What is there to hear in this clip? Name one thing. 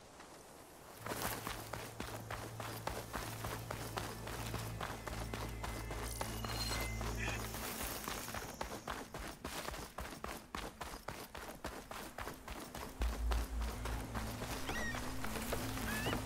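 Footsteps run quickly over sandy ground.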